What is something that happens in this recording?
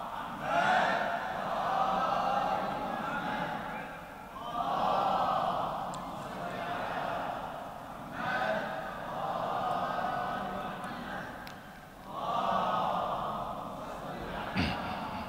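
A young man chants in long, melodic phrases through a microphone.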